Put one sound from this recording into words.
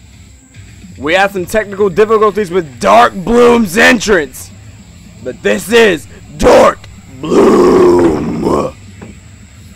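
A man talks loudly and with animation outdoors.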